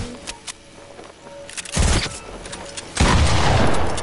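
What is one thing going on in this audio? Gunshots ring out in a video game.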